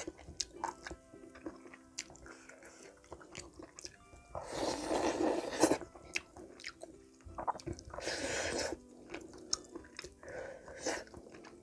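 A woman chews and slurps food loudly close to a microphone.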